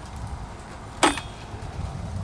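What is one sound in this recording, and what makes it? A hand clicks a part on a chainsaw.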